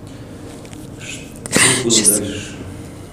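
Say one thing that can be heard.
A woman sobs and cries out in a trembling voice, close to a microphone.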